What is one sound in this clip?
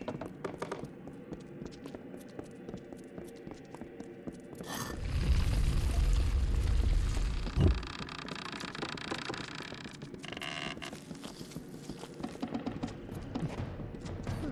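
Footsteps of an armoured warrior crunch on stone.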